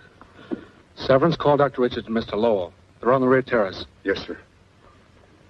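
An elderly man speaks firmly nearby.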